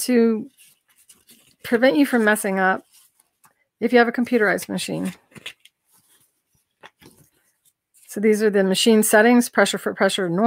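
Paper pages rustle as a booklet is leafed through.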